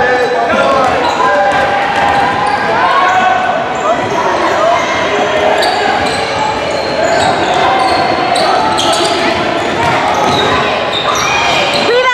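Sneakers squeak on a hardwood court in an echoing gym.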